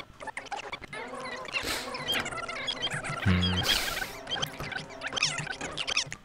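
A magic bolt crackles and zaps.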